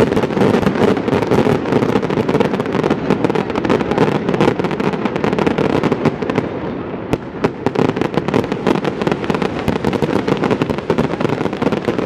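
Fireworks crackle and bang rapidly in the distance outdoors.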